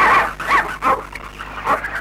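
A dog howls.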